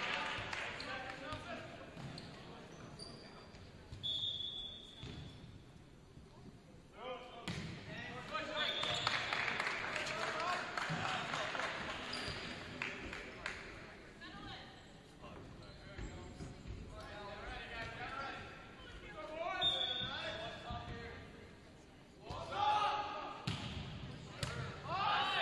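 Young men shout and call to each other in a large echoing gym.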